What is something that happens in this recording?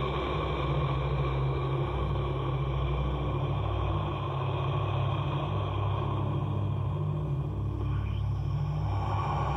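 A man declaims loudly at a microphone.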